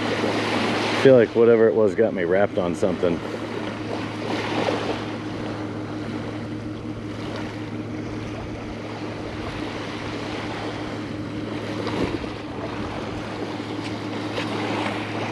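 Small waves wash gently onto a shore.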